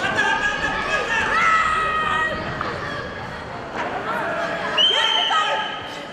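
Wrestlers' bodies thud onto a mat.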